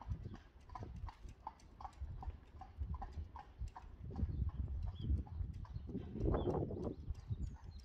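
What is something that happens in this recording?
Carriage wheels roll over pavement.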